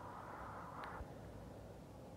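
Billiard balls click together sharply.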